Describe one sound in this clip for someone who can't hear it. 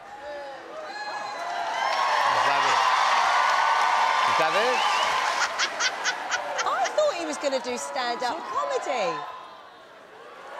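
A large audience laughs loudly in an echoing hall.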